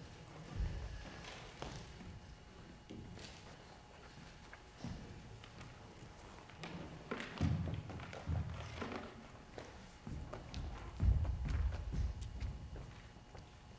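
Footsteps thud on a wooden stage in a large echoing hall.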